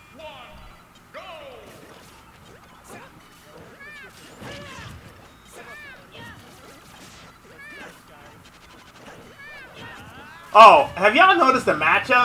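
Electronic game sound effects zap, blast and clash.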